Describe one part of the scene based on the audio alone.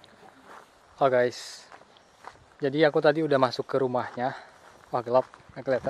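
A young man talks with animation close to the microphone, outdoors.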